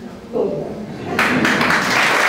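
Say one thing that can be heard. An elderly woman laughs and speaks into a microphone.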